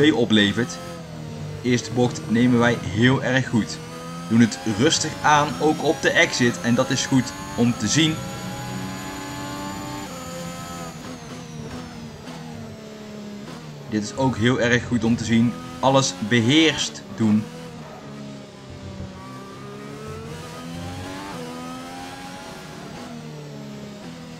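A racing car engine whines loudly, revving up and down through the gears.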